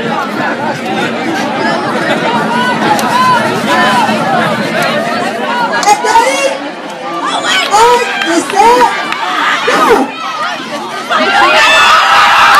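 A crowd of teenagers chatters and shouts nearby outdoors.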